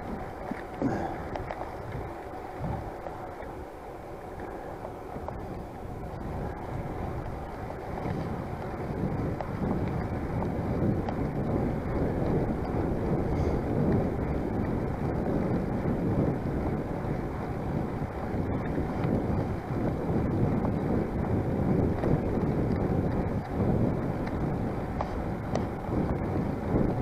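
Wind rumbles against a microphone outdoors.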